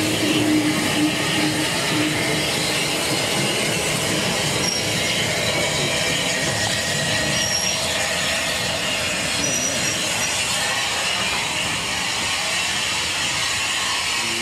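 A steam locomotive chuffs steadily as it rumbles along the track.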